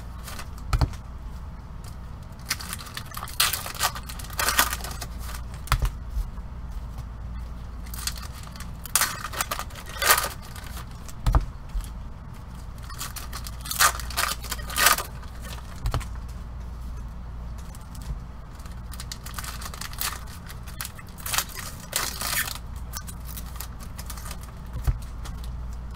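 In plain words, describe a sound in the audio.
Card packs tap and knock against a table.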